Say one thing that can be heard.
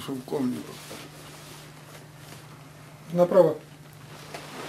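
An elderly woman speaks quietly and haltingly, close by.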